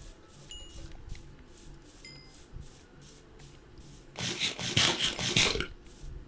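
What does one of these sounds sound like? A game character munches on food with quick, repeated crunching bites.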